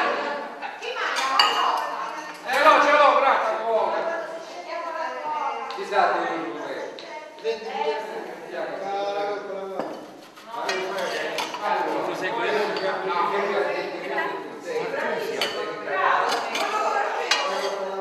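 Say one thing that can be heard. Several adults talk and chatter around a table.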